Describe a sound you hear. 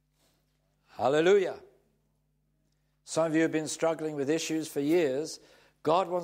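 An elderly man speaks calmly and clearly into a microphone.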